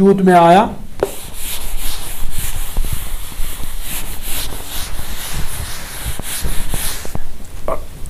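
A sponge scrubs across a board.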